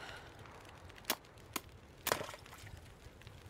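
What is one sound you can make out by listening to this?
A heavy hammer strikes and cracks ice a few times.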